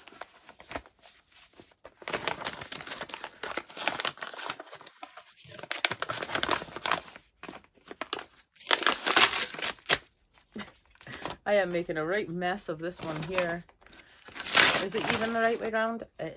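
Paper crinkles and tears as a bag is ripped open.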